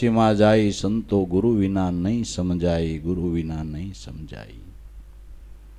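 An elderly man sings a slow, drawn-out melody into a microphone, then falls silent.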